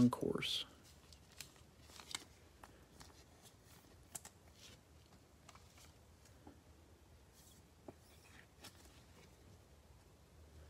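Gloved fingers handle trading cards with soft rubbing and taps.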